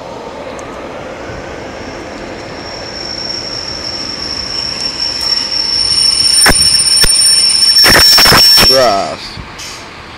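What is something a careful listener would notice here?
A diesel train rumbles in close by.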